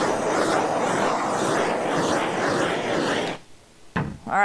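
A brush scrubs briskly across a smooth surface.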